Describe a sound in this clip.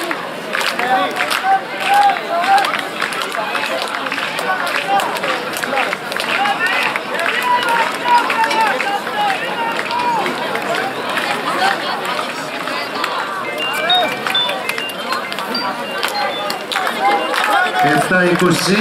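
A crowd of spectators chatters nearby outdoors.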